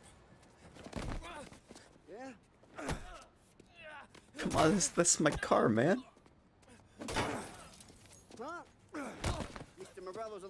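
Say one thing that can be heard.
Punches and kicks thud against a man's body.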